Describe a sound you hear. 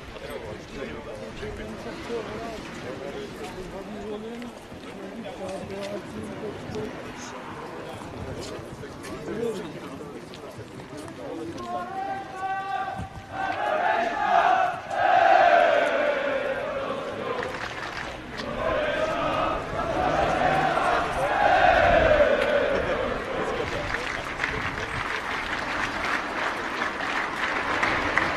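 A crowd of men talks and murmurs nearby outdoors.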